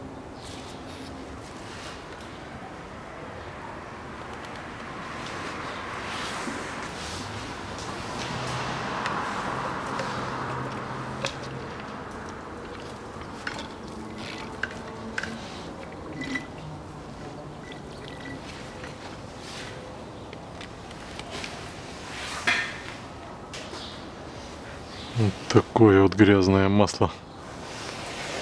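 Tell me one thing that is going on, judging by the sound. Plastic sheeting crinkles and rustles.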